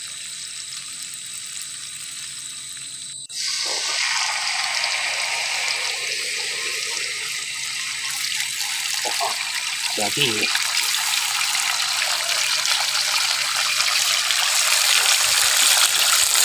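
Hot oil sizzles and spits loudly in a pan.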